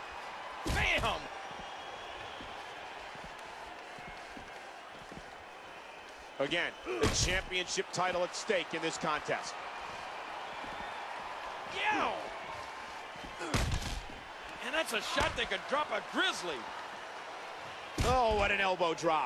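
Bodies slam onto a wrestling ring with heavy thuds.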